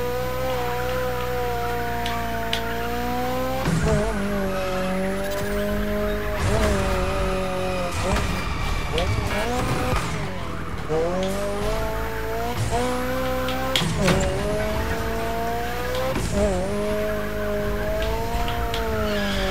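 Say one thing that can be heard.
A car engine revs loudly and whines through gear changes.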